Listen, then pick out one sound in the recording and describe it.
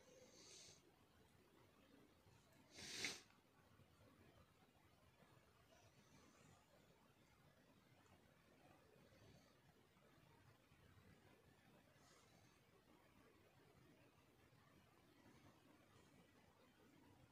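Yarn rustles softly as thread is pulled through knitted fabric.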